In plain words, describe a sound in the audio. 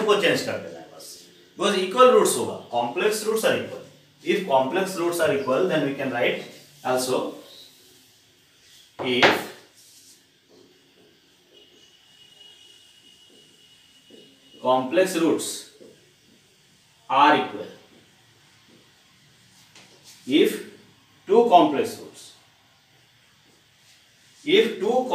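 A middle-aged man lectures calmly into a close microphone, in bursts with pauses.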